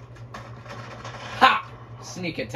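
Gunshots pop from a video game played through a television speaker.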